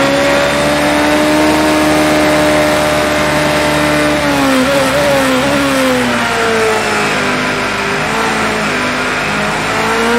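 Rain patters steadily on the car.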